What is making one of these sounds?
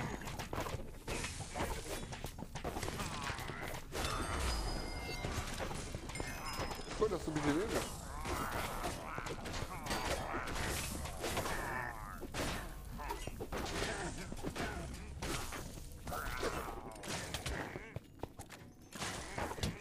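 Game sword strikes and hits clatter rapidly.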